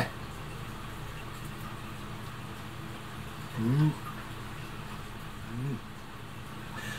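A middle-aged man slurps and chews food.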